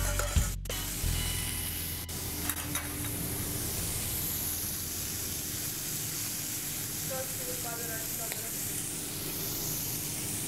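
Shrimp sizzle in oil in a hot frying pan.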